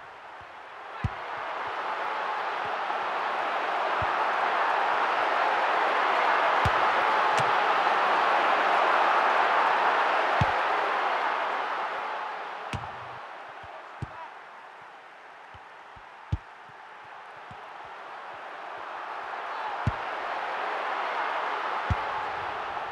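A stadium crowd roars steadily, swelling and then fading before rising again.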